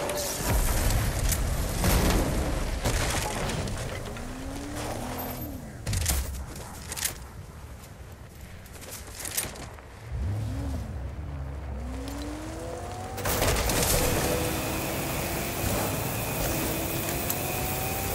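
A sports car engine revs and roars as the car speeds up.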